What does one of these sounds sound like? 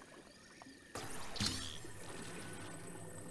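A bright magical shimmer swells up loudly.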